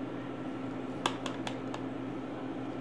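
A plastic container knocks lightly against the rim of a pot.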